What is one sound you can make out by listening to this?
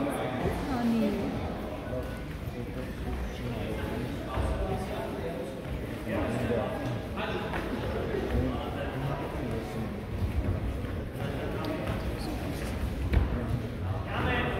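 Young fighters' feet thump and shuffle on a mat.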